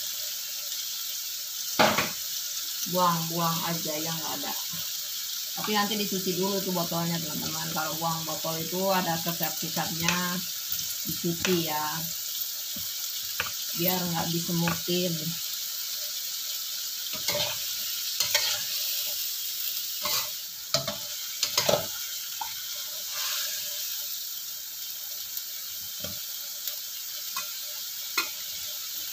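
Food sizzles and bubbles in a hot pan.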